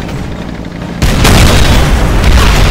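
A shell explosion booms close by.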